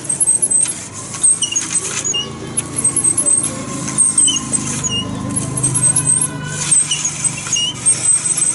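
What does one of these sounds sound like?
A blade scrapes and hisses against a spinning grinding wheel.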